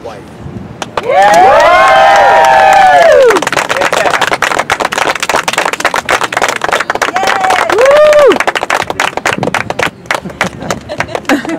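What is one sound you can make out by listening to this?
A crowd of guests claps and applauds.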